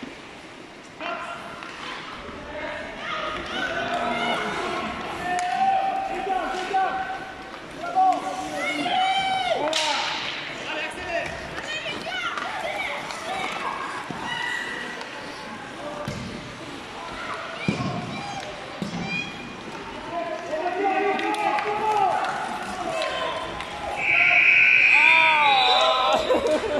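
Children shout and call out in a large echoing hall.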